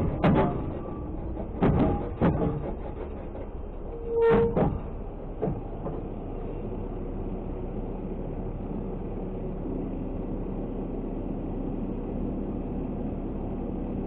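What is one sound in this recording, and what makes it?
A large vehicle's engine rumbles steadily close by.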